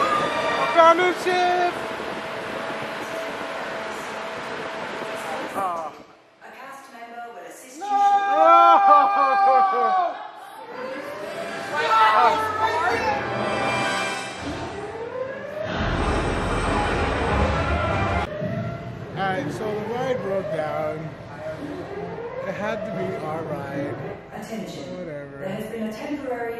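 Several men and women shout and talk excitedly nearby.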